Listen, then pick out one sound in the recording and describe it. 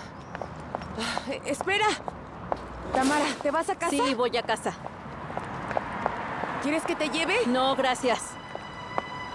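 A woman calls out loudly outdoors.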